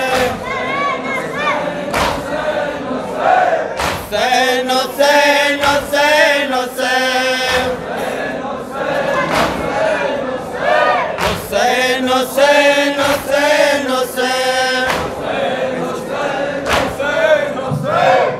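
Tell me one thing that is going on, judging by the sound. A crowd of young men chants loudly in unison.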